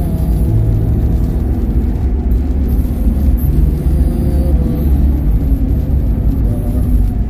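A car drives steadily along a highway with a low road rumble.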